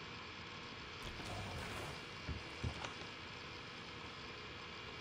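Water splashes against a small wooden sailing boat.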